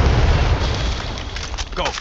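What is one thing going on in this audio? A rifle magazine clicks out during a reload.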